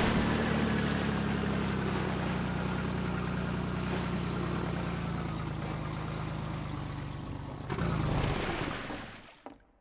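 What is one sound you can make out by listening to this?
A boat engine drones steadily, then sputters and shuts off.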